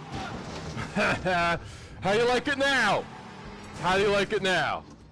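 A young man shouts and yells loudly into a close microphone.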